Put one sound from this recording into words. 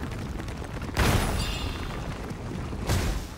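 Crystals shatter with a loud crack.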